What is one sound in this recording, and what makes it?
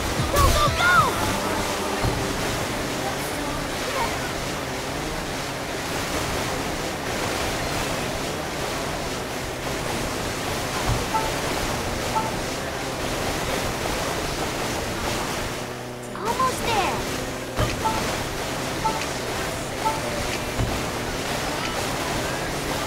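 A jet ski engine roars steadily over the water.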